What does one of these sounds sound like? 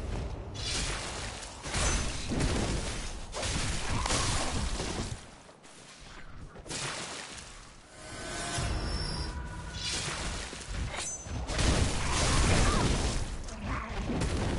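A beast snarls and roars close by.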